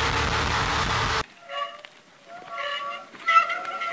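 A bicycle rolls through mud.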